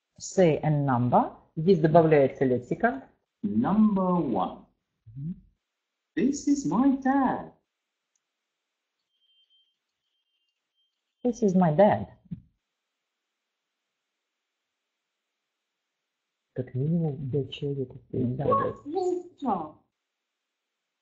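A woman speaks calmly and clearly over an online call, pausing between phrases.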